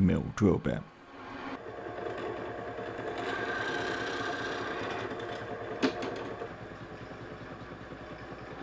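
A drill press whirs steadily as it bores into wood.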